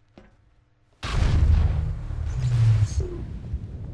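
A heavy metal car body is flung away with a loud rushing blast.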